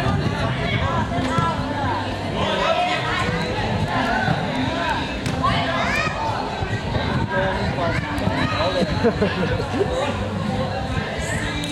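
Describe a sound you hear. Many children shout and cheer excitedly nearby.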